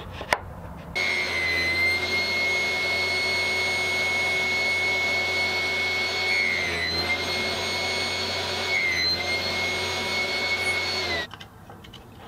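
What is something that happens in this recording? A table saw whines steadily as it cuts through wood.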